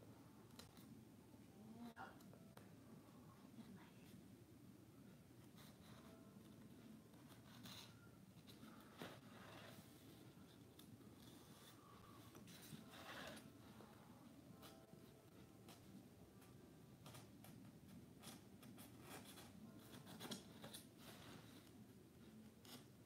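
A craft knife scrapes and cuts through cardboard in short strokes.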